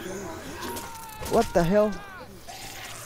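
A man screams in pain.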